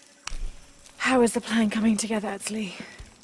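A young woman speaks quietly and tensely, close by.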